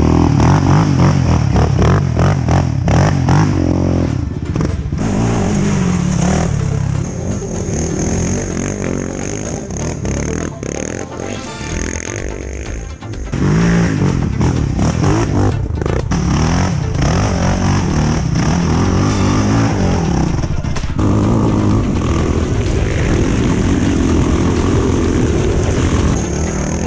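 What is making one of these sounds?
Quad bike engines roar and rev.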